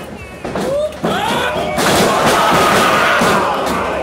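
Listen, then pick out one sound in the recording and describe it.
A wrestler's body thuds onto the ring canvas.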